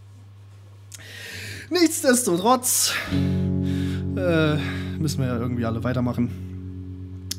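An electric guitar is strummed loudly through an amplifier.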